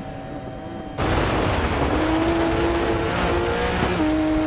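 Gravel sprays and rattles under car tyres.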